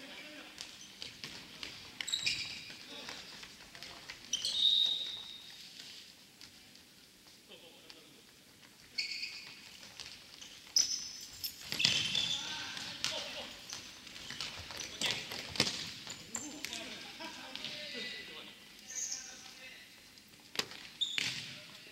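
A ball thuds when it is kicked.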